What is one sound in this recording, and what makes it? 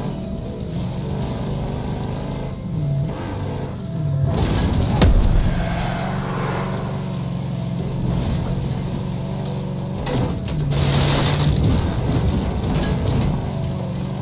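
A vehicle engine hums steadily and revs as it drives over rough ground.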